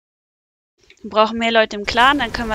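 A woman speaks close to a microphone.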